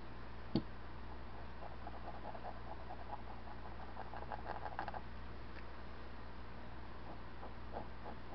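A thin brush dabs and strokes softly on canvas.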